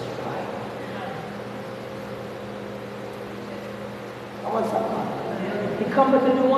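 A man sings into a microphone, heard over loudspeakers in a large echoing hall.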